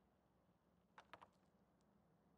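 Menu clicks beep softly.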